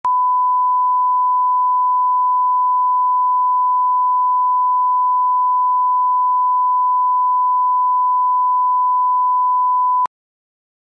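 A steady, high test tone sounds without a break, then cuts off abruptly.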